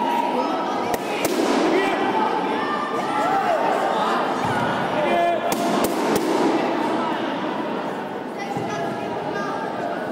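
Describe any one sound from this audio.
Fighters' feet thud and slap on the mat.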